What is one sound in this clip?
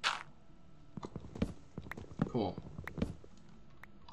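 Leaves rustle and crunch as they break apart.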